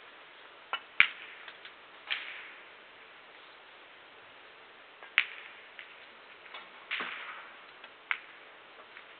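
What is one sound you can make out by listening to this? A cue strikes a ball with a sharp click.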